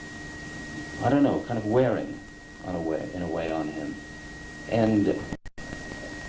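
A middle-aged man speaks calmly into a handheld microphone.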